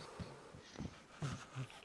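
Boots thud on a hard floor.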